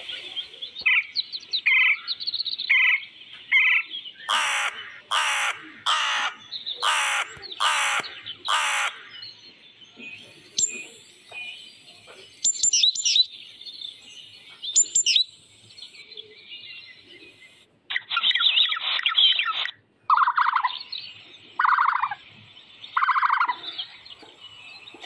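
Birds chirp and call repeatedly nearby.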